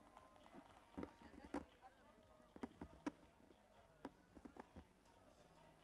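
Dancers' feet stomp and thud on a stage outdoors.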